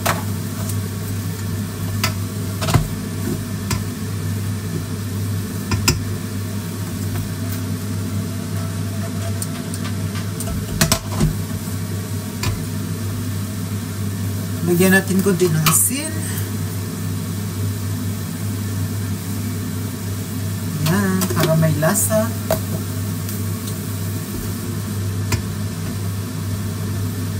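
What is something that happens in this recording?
A spatula scrapes and clatters against a metal pan.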